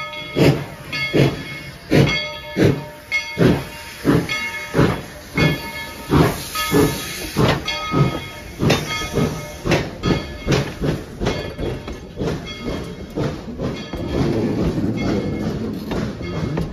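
A steam locomotive chuffs loudly in rhythmic bursts as it rolls past close by.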